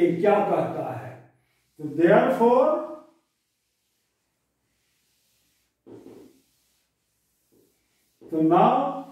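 An elderly man speaks calmly, in short phrases, close by.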